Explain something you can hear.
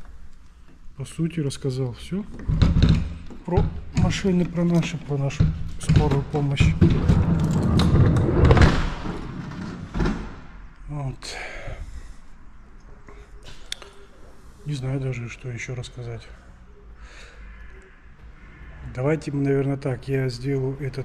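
A man talks close to the microphone with animation, his voice echoing in a large hall.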